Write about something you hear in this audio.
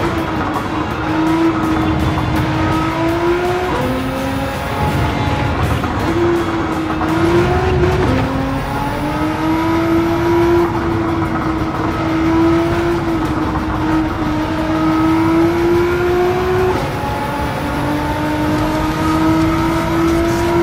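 A racing car engine roars, its pitch rising and dropping as it shifts gears.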